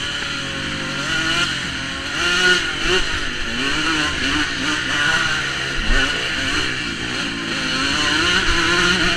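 Wind buffets loudly past a microphone.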